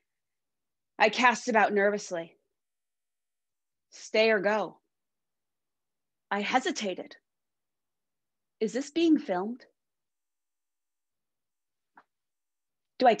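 A woman speaks calmly in short phrases over an online call.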